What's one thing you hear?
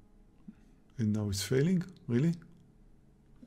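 A middle-aged man speaks briefly into a close microphone.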